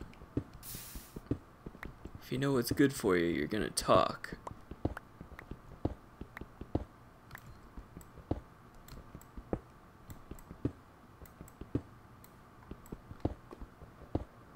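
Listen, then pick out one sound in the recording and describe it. A pickaxe chips at stone blocks in short repeated knocks.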